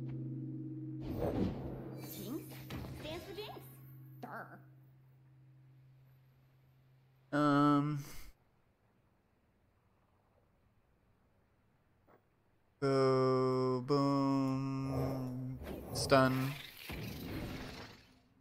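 A card game's sound effects chime and whoosh as cards are played.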